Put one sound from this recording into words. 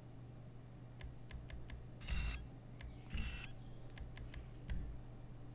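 Soft menu clicks tick several times.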